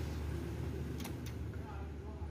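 A metal plug clicks as it is pulled from a socket.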